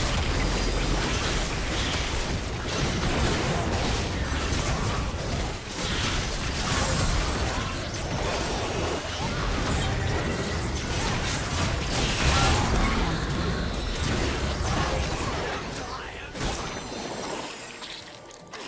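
Magic blasts and clashing weapons crackle and burst in a fast battle.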